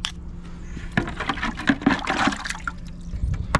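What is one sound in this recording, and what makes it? Water sloshes and splashes in a bucket.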